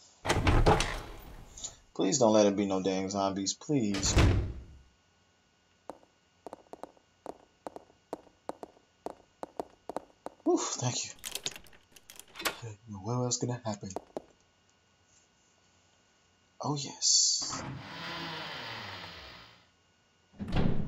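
A heavy wooden door creaks slowly open.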